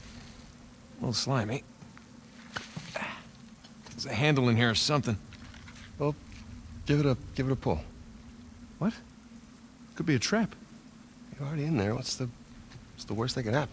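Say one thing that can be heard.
A man answers in a relaxed voice.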